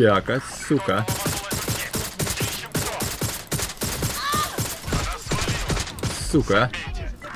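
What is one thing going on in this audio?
A gun fires a rapid series of shots.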